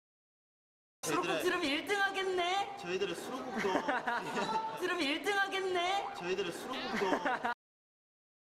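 Several young men talk and laugh together.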